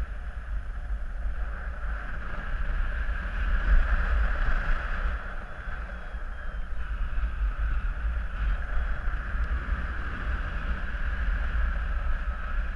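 Wind rushes and buffets steadily, heard outdoors high in the open air.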